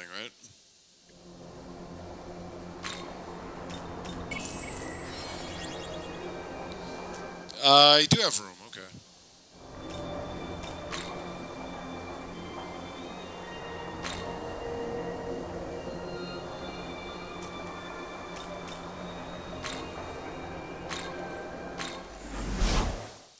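Calm electronic game music plays steadily.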